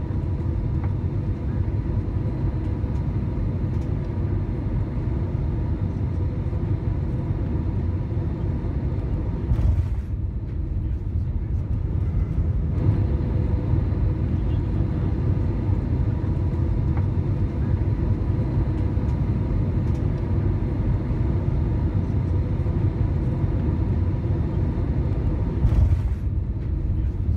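Jet engines roar steadily and deeply.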